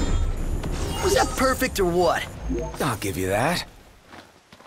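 A large beast bellows and groans.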